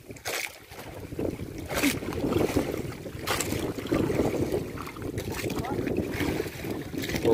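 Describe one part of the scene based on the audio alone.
Water splashes against the side of a boat.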